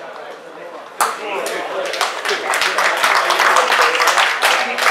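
A small crowd claps and cheers.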